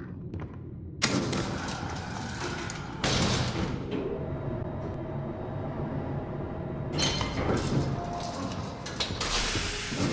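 A metal lift cage rumbles and creaks as it moves.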